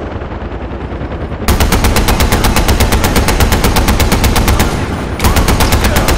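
A helicopter's rotor thumps loudly nearby.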